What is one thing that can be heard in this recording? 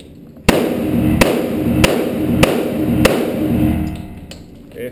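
A pistol fires several quick shots that echo loudly around an indoor range.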